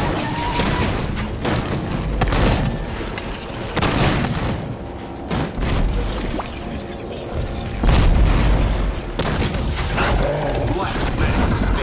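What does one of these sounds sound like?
Gunfire from a video game crackles in short bursts.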